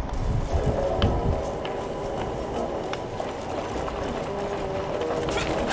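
Footsteps tread over soft, wet ground.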